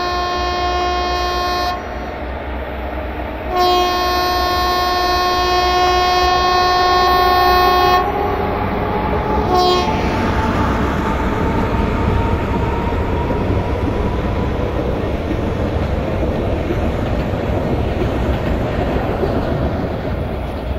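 A train rumbles and clatters along the tracks.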